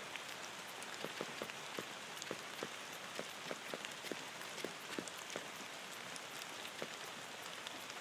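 Footsteps tap quickly on a hard surface.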